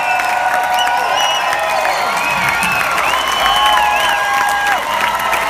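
A crowd claps along in time.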